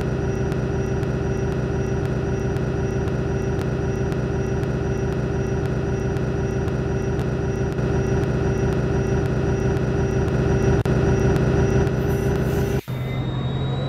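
A bus engine idles with a steady hum.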